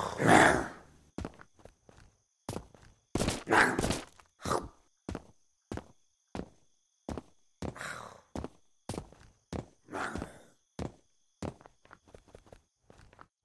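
Footsteps fall steadily on pavement.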